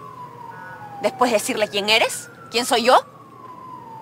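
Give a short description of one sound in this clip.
A young woman speaks sharply and angrily nearby.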